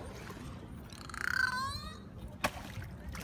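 A dolphin chatters with high squeaks.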